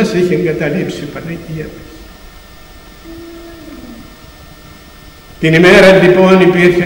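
An elderly man speaks loudly into a microphone, heard through loudspeakers in an echoing hall.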